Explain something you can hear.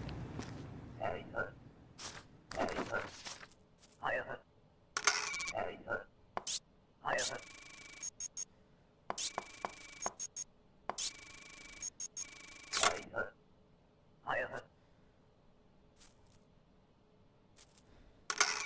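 Short electronic blips and chirps sound in quick bursts.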